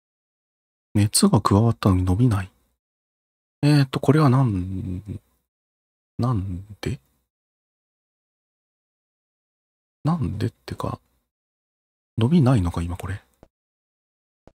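A person talks with animation, close to a microphone.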